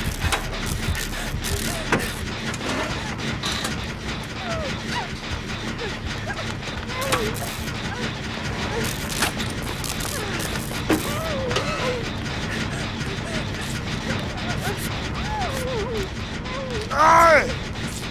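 A generator engine rattles and clanks steadily.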